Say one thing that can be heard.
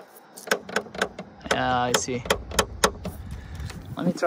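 Fingers tap and click on a plastic car grille.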